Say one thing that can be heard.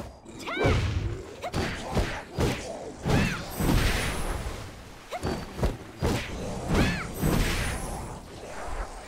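Blades whoosh and strike in quick bursts of combat.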